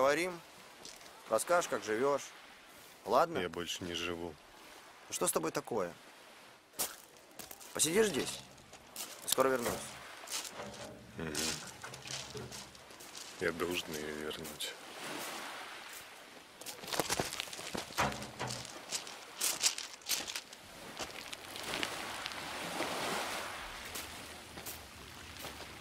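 Waves wash onto a pebble shore.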